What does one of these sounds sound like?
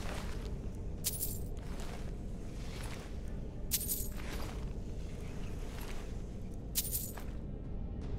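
Coins clink several times, sharp and bright.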